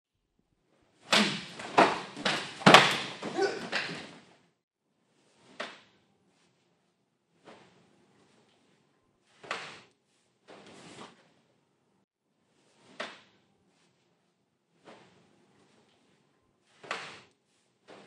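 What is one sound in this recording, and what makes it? Hands slap sharply against bodies.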